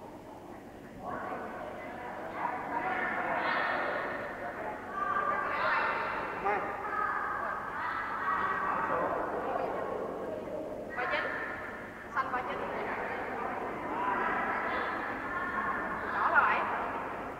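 Children's voices chatter and call out in a large echoing hall.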